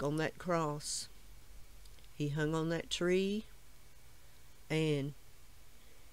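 An elderly woman speaks calmly and close by, in short phrases.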